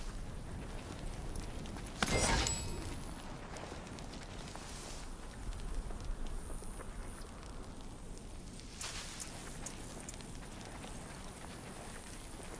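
Footsteps run over dry ground.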